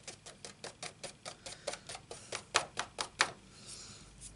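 Card taps rapidly and repeatedly against an ink pad.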